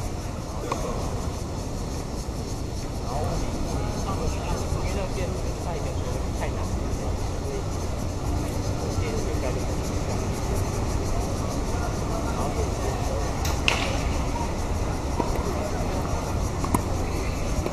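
Tennis balls are struck with rackets, with sharp pops.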